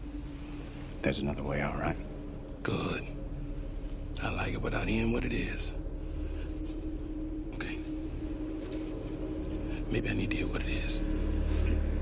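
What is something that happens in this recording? A second man answers tensely up close.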